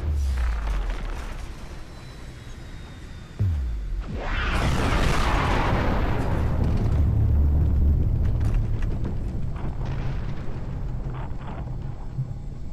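A deep engine rumble hums steadily.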